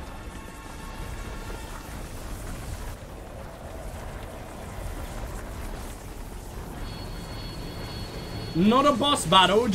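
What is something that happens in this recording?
Magical energy crackles and whooshes in bursts.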